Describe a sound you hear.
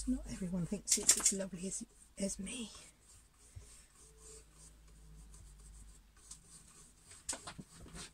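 A paintbrush dabs and brushes softly on canvas.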